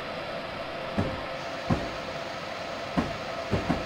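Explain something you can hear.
Train wheels knock over rail joints.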